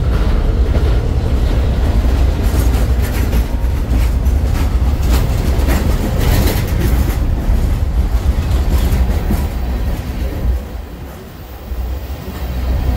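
Steel wheels clack and squeal over rail joints.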